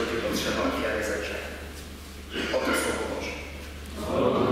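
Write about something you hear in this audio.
A young man speaks into a microphone in an echoing hall.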